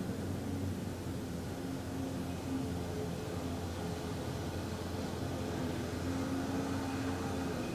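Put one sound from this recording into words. A man hums a low, steady chant close by.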